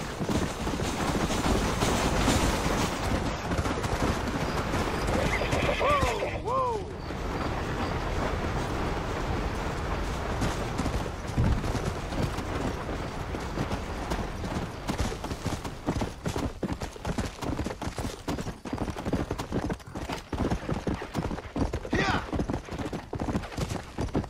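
A horse gallops with quick, heavy hoofbeats.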